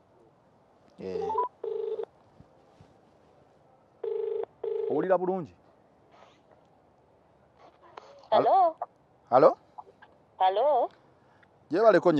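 A young man speaks into a phone held near his mouth, in short bursts.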